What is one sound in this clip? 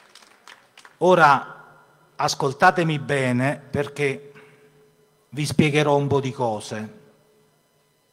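A man speaks loudly into a microphone through loudspeakers, with pauses, outdoors.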